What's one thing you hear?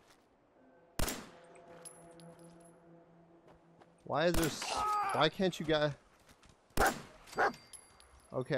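Gunshots fire sharply a few times.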